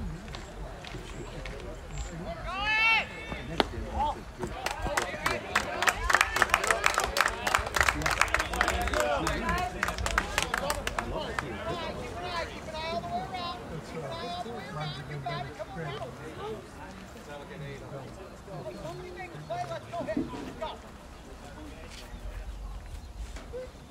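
Young men shout and call out across an open field in the distance.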